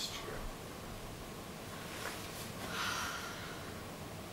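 Bedding rustles softly as someone shifts in bed.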